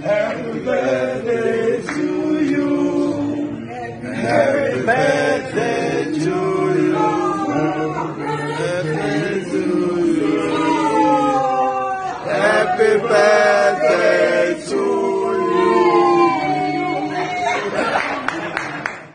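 A man sings loudly and with feeling, close by.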